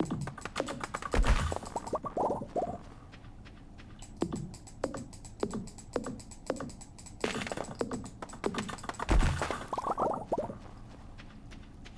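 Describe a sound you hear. An axe chops into wood with sharp, repeated knocks.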